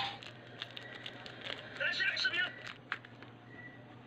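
A paper soap wrapper crinkles as hands tear it open.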